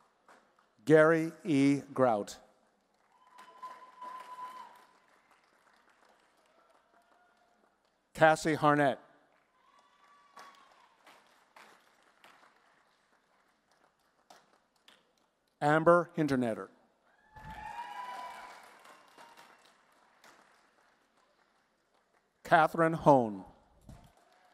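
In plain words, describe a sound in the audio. A woman reads out names through a microphone in a large hall.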